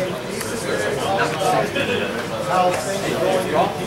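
Playing cards tap and slide on a soft table mat.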